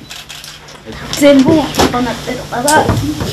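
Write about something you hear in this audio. A woman speaks emotionally nearby.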